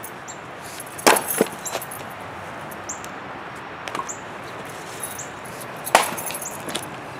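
An axe splits wood with sharp cracks.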